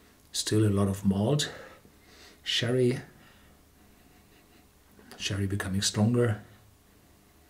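A middle-aged man speaks calmly and close to a microphone, in short phrases.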